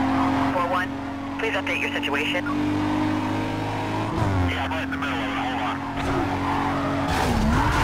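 A police siren wails close behind.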